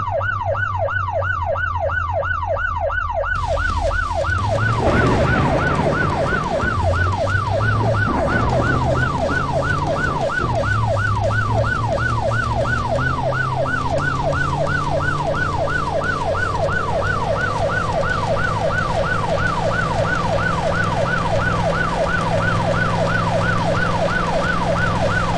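A heavy armored truck's engine rumbles as it drives.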